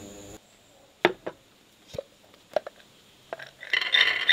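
Hard nuts clatter onto a plate.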